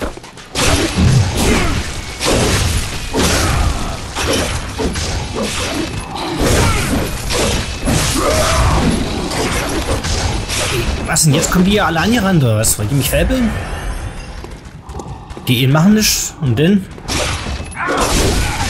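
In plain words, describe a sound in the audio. Blades slash and strike in a close fight.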